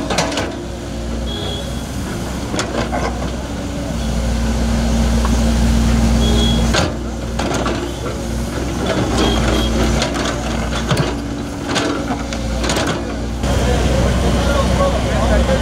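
An excavator bucket scrapes and thuds into soil and rubble.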